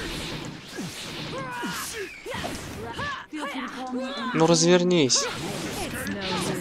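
A magic blast whooshes.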